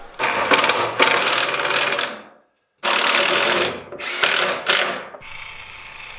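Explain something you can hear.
A cordless impact driver whirs and rattles in loud bursts as it drives screws into wood.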